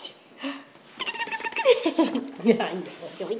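A dog whines excitedly.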